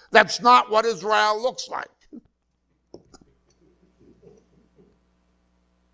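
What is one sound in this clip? A middle-aged man speaks with animation into a clip-on microphone.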